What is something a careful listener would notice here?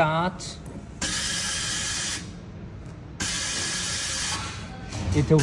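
A machine blows air with a steady, loud hiss that stops and starts again.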